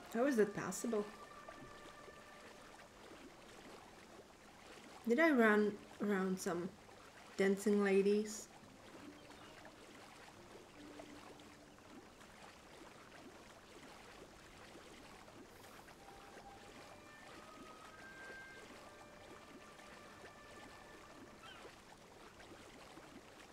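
Water splashes steadily.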